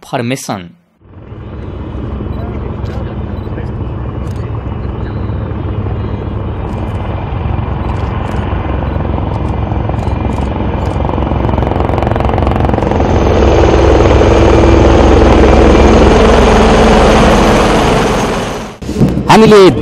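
Helicopters thunder overhead, growing louder.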